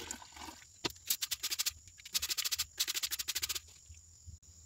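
A spatula scrapes against the inside of a plastic bowl.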